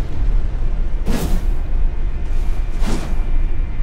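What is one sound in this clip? A heavy blade whooshes through the air.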